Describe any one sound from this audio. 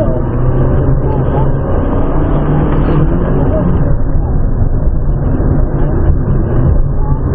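Tyres squeal on pavement through tight turns.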